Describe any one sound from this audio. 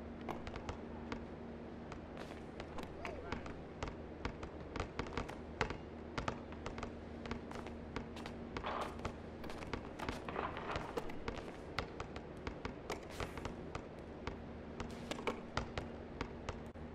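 A basketball bounces repeatedly on a hard court.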